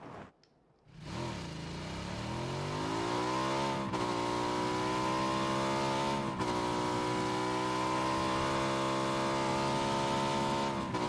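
A motorcycle engine starts and pulls away, shifting up through the gears.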